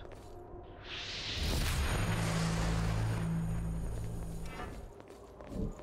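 A magical burst whooshes and crackles with a sparkling shimmer.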